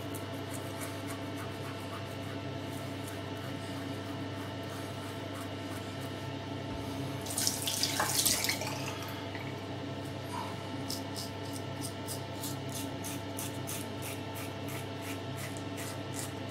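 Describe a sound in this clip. A razor scrapes through stubble in short, rhythmic strokes.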